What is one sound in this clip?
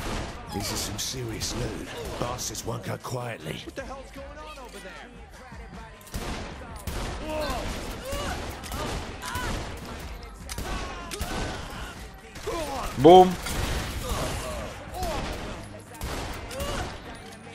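Guns fire in rapid bursts of sharp shots.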